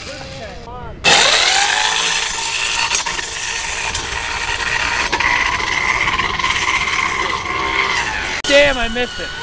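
A small electric motor whines steadily.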